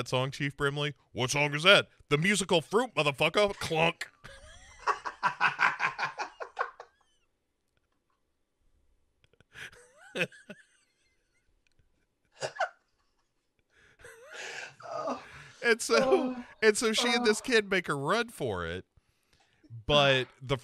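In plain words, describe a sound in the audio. A second man talks and laughs over an online call.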